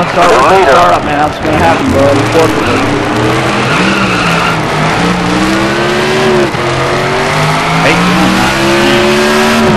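A race car engine roars at high speed, its pitch slowly rising.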